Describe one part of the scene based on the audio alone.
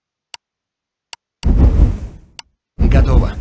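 Short menu clicks sound a few times.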